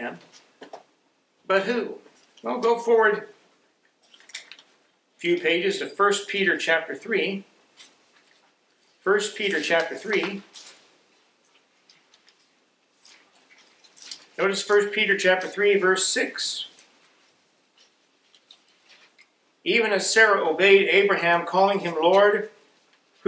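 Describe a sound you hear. A middle-aged man reads aloud slowly into a microphone, with pauses.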